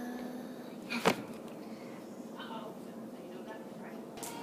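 A young girl giggles.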